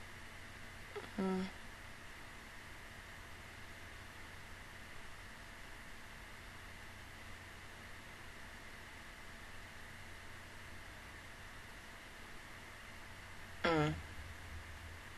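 A young woman makes a brief murmur close to a microphone.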